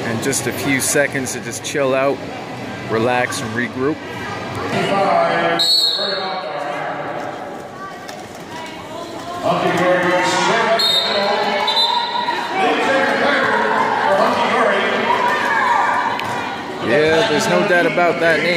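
Several people shout and cheer in a large echoing hall.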